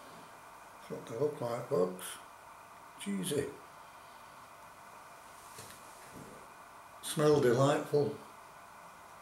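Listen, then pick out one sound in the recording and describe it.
An older man speaks close by in short bursts.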